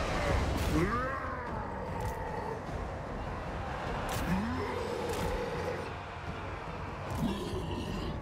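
A large battle rages with a steady din of clashing weapons and distant shouting.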